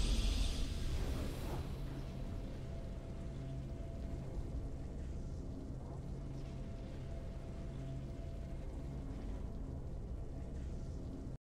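Soft game music hums steadily.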